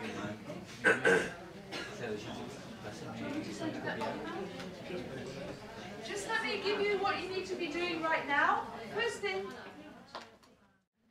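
A woman speaks calmly to an audience.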